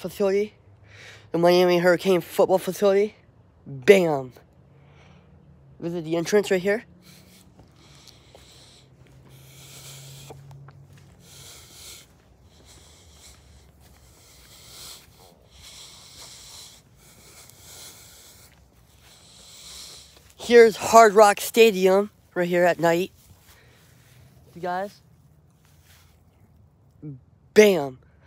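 A young man speaks in short bursts, very close to the microphone.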